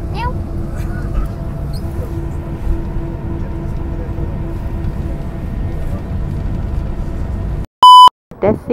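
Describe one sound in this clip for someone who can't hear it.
A jet engine drones steadily with a low roar.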